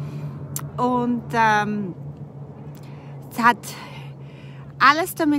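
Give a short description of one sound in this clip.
A woman talks with animation close to the microphone.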